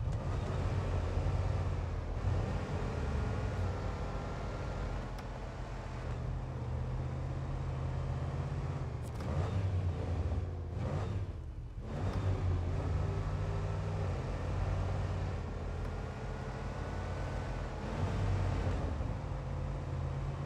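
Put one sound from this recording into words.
A truck engine rumbles steadily and revs up and down as the truck drives.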